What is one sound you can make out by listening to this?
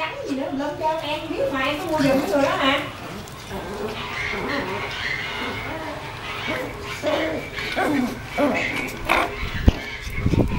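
A dog growls softly while play-fighting.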